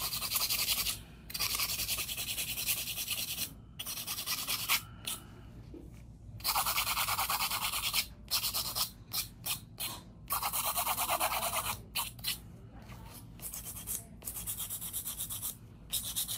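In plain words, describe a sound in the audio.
A nail file scrapes rapidly back and forth across fingernails.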